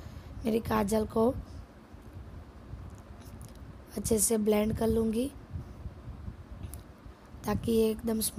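A young woman talks calmly, close to a microphone.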